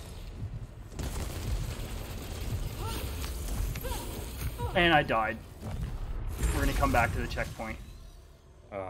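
Gunfire and explosions crack and boom.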